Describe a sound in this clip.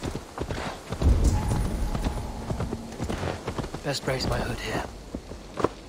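A horse gallops with heavy hoofbeats.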